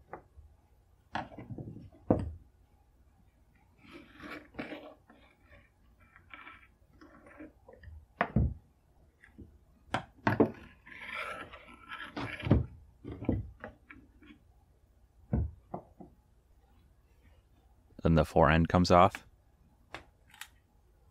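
Metal and wood parts knock against a wooden bench.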